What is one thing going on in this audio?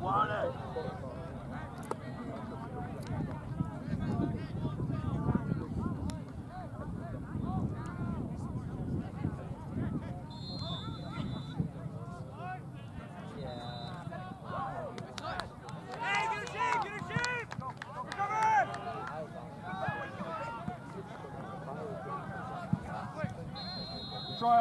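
Young men shout and call to each other from a distance across an open field.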